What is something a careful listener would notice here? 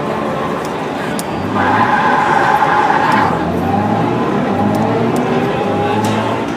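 A racing game's car engine roars and revs through loudspeakers.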